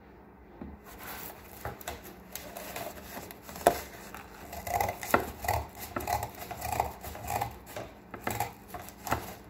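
Scissors snip through thick cardboard.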